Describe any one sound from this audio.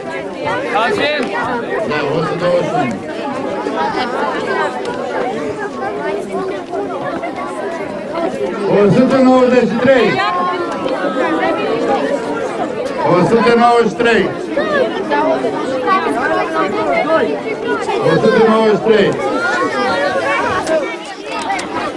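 A middle-aged man speaks into a microphone over a loudspeaker, with animation.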